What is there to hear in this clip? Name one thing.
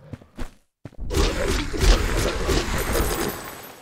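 Fire bursts with a loud roar.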